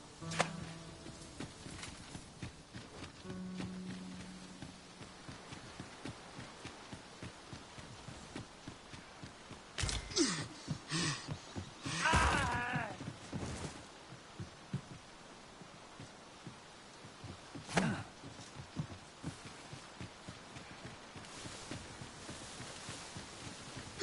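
Footsteps crunch over stone and gravel.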